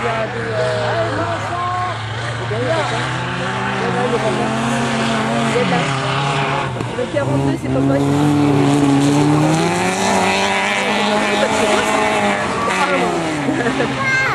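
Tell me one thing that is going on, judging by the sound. Several car engines roar and rev at a distance, rising and falling in pitch.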